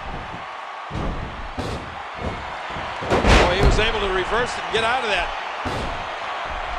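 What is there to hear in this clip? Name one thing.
Heavy thuds of bodies hitting a wrestling ring mat sound now and then.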